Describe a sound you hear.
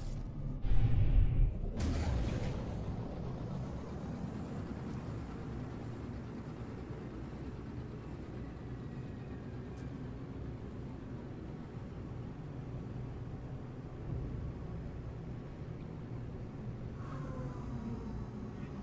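A spaceship engine rumbles with a deep, steady drone.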